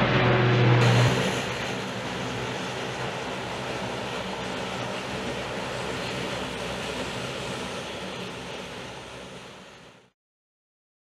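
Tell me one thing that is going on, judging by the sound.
A turboprop plane hums steadily as it taxis nearby.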